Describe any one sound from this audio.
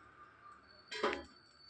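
A metal lid clatters as it is lifted off a pan.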